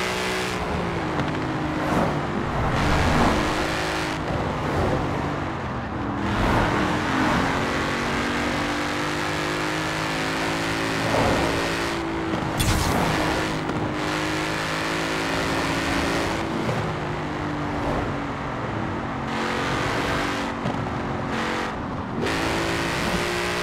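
Tyres whine on a road at speed.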